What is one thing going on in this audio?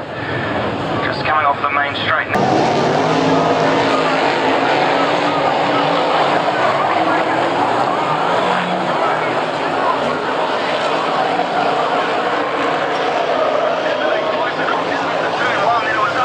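Racing car engines roar loudly around a dirt track.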